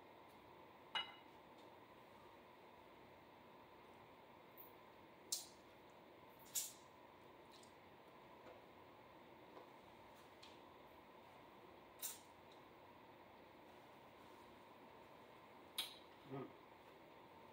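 A fork clinks against a plate now and then.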